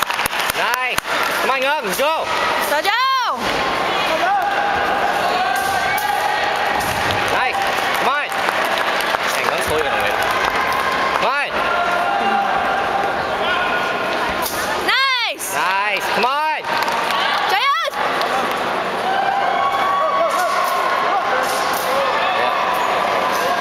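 A large indoor crowd murmurs and chatters in an echoing hall.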